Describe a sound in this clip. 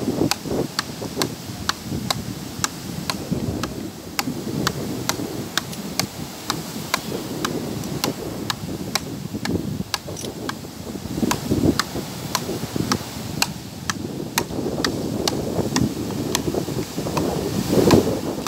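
Wooden frescobol paddles strike a rubber ball back and forth in a fast rally.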